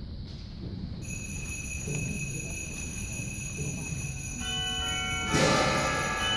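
Wind instruments hold scattered sustained notes.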